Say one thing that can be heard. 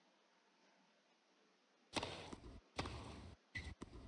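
A tennis ball is struck hard with a racket.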